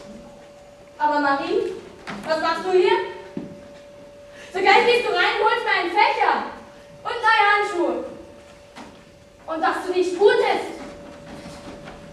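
A young woman speaks with feeling.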